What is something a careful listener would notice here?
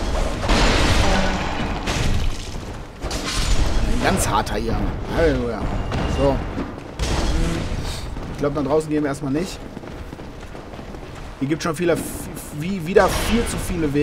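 A sword strikes an enemy with a metallic clang.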